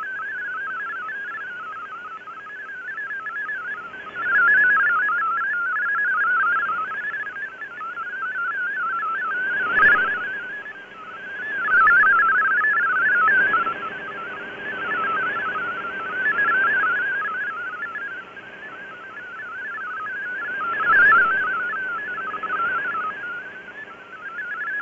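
A shortwave radio plays a warbling digital data signal through static.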